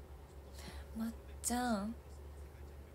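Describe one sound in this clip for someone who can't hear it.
A young woman speaks briefly and close by.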